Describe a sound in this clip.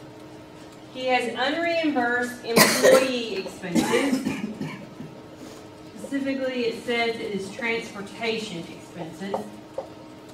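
A woman speaks calmly, like a teacher.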